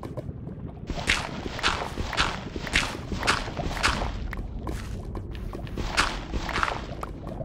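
A shovel digs into stone again and again with crunching, scraping blows.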